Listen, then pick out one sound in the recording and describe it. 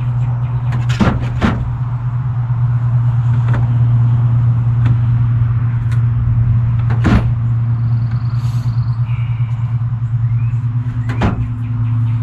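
Footsteps knock on a wooden frame.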